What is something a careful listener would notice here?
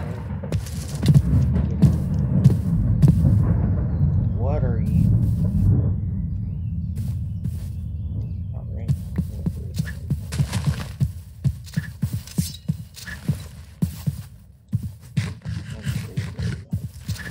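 Footsteps crunch softly on grass.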